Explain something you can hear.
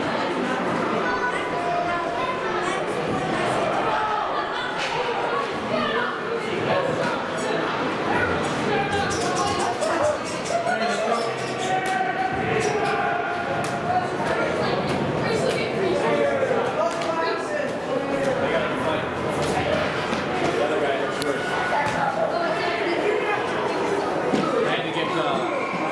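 Hockey sticks clack against a puck and the ice.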